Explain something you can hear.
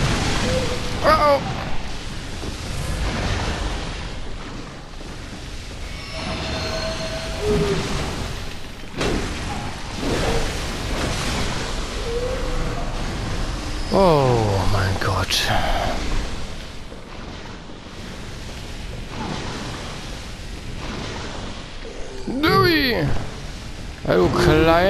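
A creature shrieks loudly.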